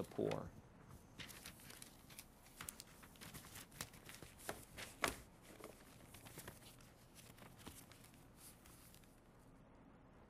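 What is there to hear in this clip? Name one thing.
Paper sheets rustle and crackle as they are shuffled.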